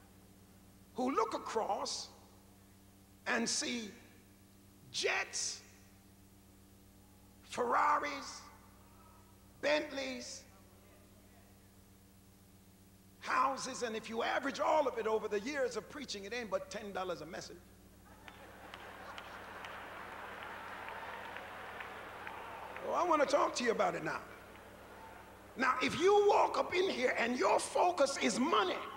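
A man preaches with animation through a microphone in a large echoing hall, in short bursts.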